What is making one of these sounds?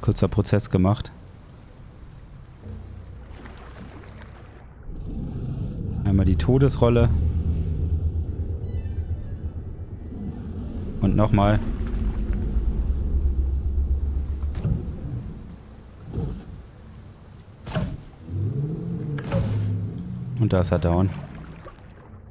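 A crocodile growls with deep, rumbling calls.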